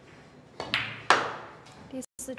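Balls knock together on a table.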